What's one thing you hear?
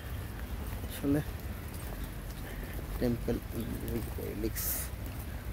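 A man talks briefly and calmly, close by.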